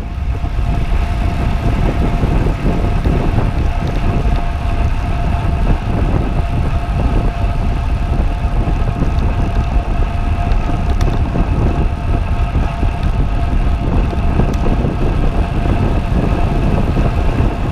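Wind rushes and buffets loudly past a cyclist riding fast.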